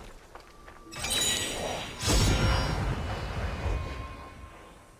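A chime sounds.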